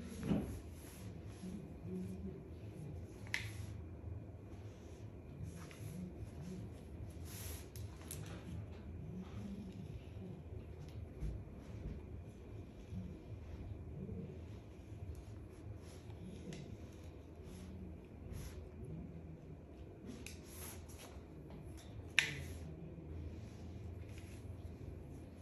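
A comb rustles as it pulls through hair.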